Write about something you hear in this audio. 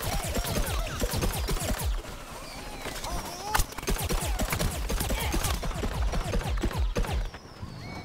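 Rapid cartoonish shots pop in quick bursts.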